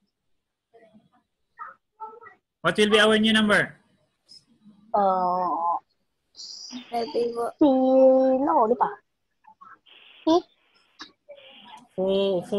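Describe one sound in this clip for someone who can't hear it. Young children speak and call out in drawn-out voices over an online call.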